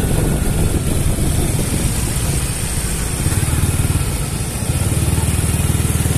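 A motor scooter engine putters close by.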